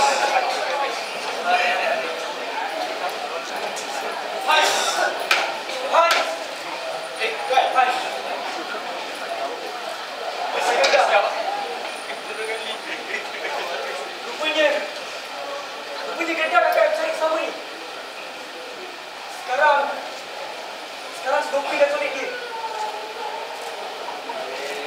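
Young men speak loudly to each other in a large echoing hall.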